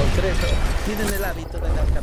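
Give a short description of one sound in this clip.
A large creature thuds and crashes heavily.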